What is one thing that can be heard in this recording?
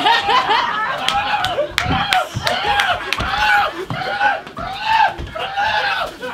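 Feet stomp on a wooden stage floor.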